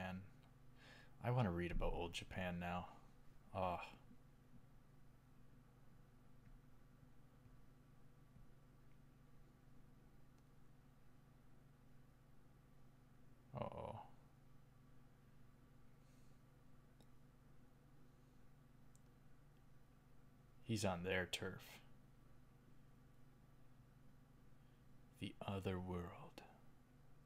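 A young man speaks calmly into a close microphone, in short bursts with long pauses.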